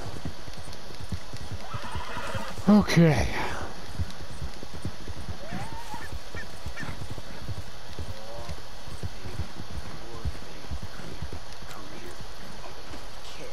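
Horse hooves thud steadily on a dirt track.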